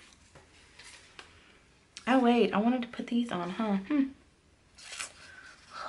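Paper sticker sheets rustle and crinkle.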